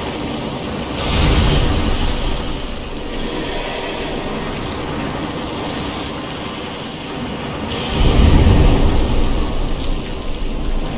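Strong wind howls and gusts through a snowstorm.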